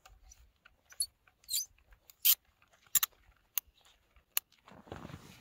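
Sharp plastic clicks come from a cordless drill being handled.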